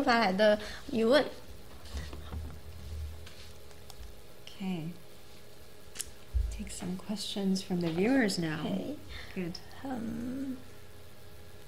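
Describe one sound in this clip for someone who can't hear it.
A woman speaks with animation into a microphone, close by.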